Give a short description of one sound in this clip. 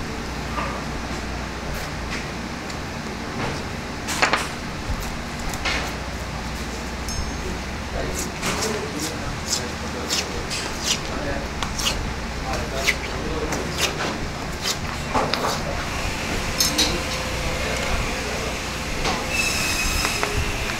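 A knife scrapes and cuts along ribs of raw meat.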